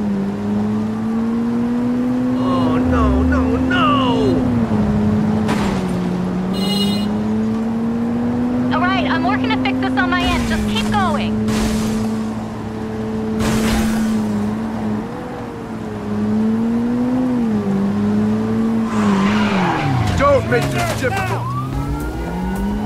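A car engine roars and revs up and down as the car speeds along.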